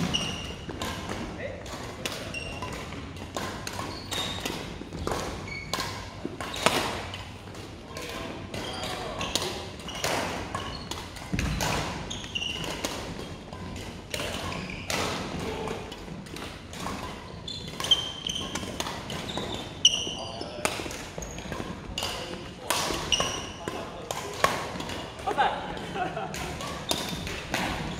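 Badminton rackets hit a shuttlecock in quick rallies.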